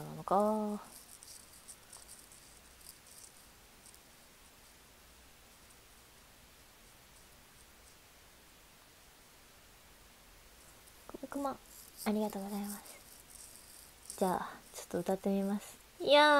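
A young woman speaks close to a microphone, in short bursts with long pauses.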